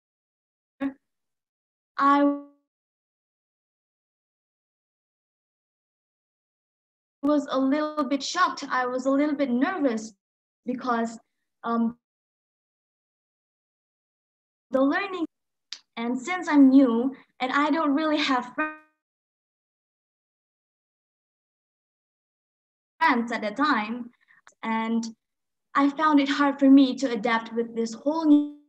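A young woman speaks calmly with pauses, heard through an online call microphone.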